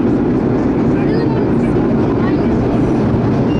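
Train wheels screech faintly on the rails.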